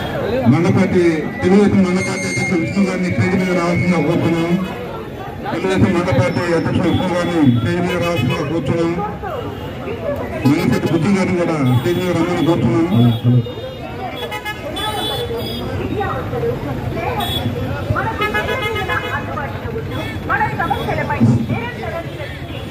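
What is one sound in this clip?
A crowd of men chatters nearby.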